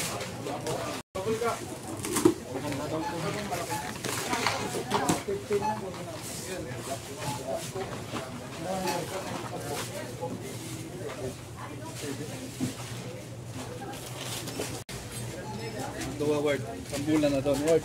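Men and women talk nearby.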